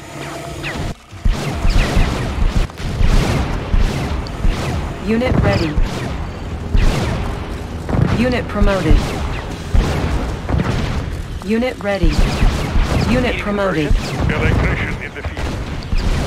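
Rapid gunfire crackles in a loud battle.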